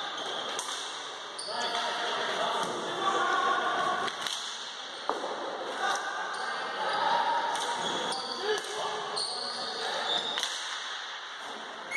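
Sticks clatter and a ball smacks against sticks in an echoing sports hall.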